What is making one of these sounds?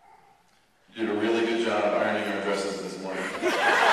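A young man speaks loudly through a microphone.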